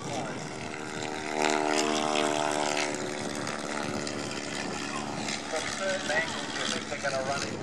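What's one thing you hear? Propeller plane engines drone overhead, passing by.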